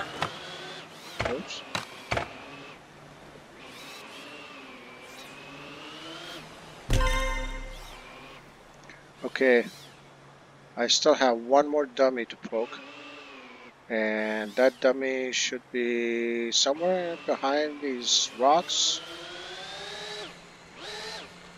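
A small toy car motor whines, rising and falling in pitch.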